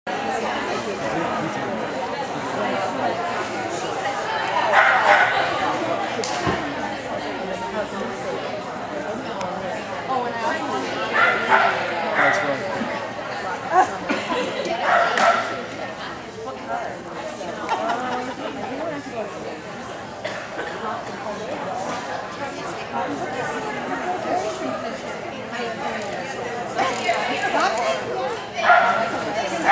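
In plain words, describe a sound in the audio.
A woman calls out commands to a dog with animation in a large echoing hall.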